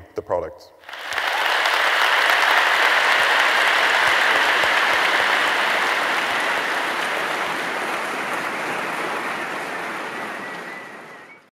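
A large audience applauds loudly and steadily.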